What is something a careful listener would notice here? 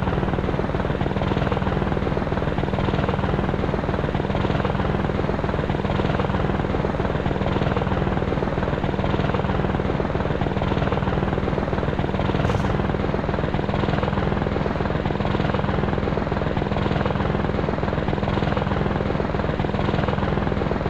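A helicopter's rotor blades thump steadily.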